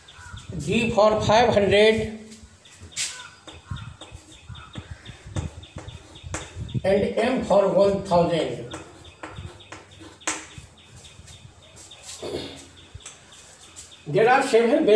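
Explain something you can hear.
An elderly man speaks calmly and clearly, like a teacher explaining.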